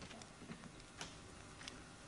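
A door latch clicks as a handle turns.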